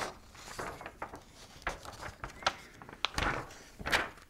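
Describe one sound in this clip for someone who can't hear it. Paper rustles as a page is handled.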